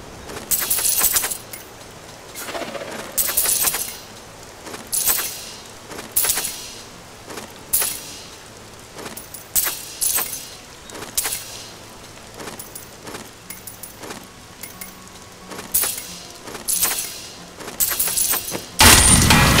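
Armour and gear pieces clink and rustle in short bursts, one after another.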